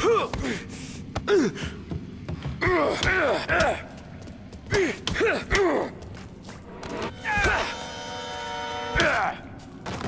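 Fists thud in a scuffle.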